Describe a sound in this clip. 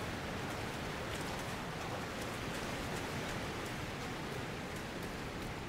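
Footsteps rustle through grass and undergrowth.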